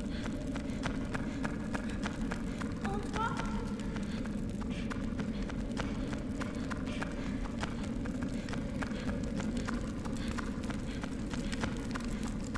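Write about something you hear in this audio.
Quick footsteps patter on a stone walkway.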